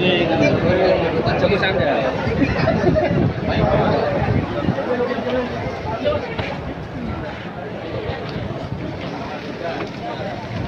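A crowd of men talks and murmurs nearby outdoors.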